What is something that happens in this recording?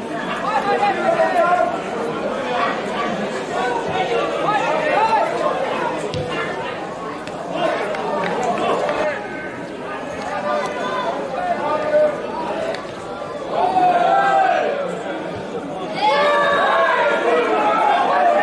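Football players shout to each other from a distance across an open field.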